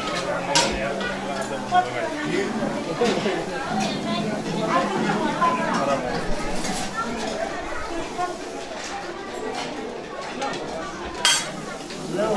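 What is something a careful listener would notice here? Serving spoons clink against metal dishes.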